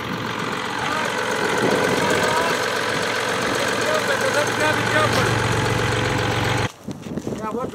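A bus engine idles nearby with a steady low hum.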